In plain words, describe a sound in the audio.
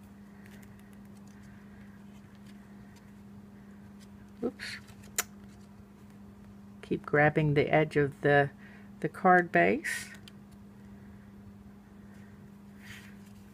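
Card stock rustles softly as hands handle it.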